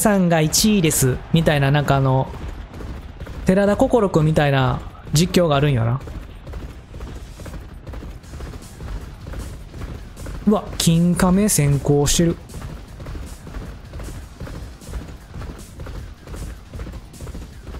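Horses' hooves thud rapidly on turf.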